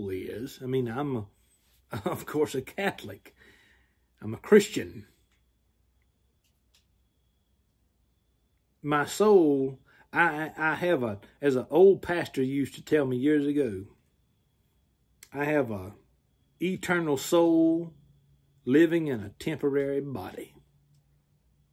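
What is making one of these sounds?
A man speaks calmly and close to the microphone, with pauses.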